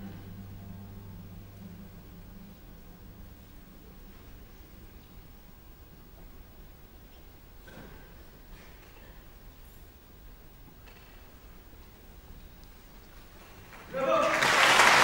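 A cello plays slowly and softly in a large hall.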